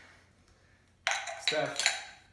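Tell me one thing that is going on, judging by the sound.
Glass jars clink together in a toast.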